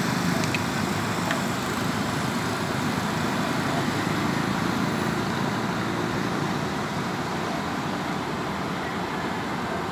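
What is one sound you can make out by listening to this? Wind blows steadily and roughly across the microphone outdoors.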